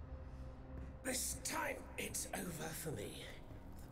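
A man speaks in a low, weary voice close by.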